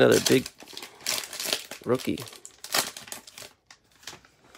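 A plastic wrapper crinkles and tears as it is pulled open.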